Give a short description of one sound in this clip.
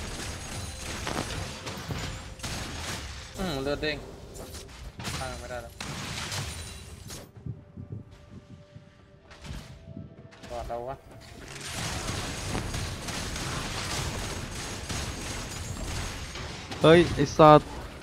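Game spell effects whoosh and clash during a fight.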